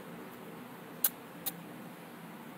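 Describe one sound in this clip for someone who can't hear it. A computer mouse clicks twice.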